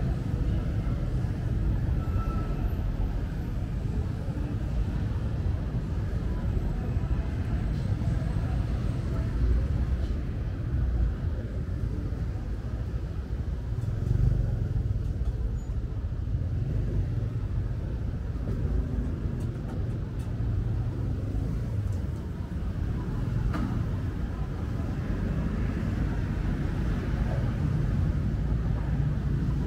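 City traffic rumbles past on a busy street.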